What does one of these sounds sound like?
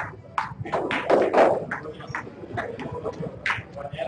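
Snooker balls knock together with a click.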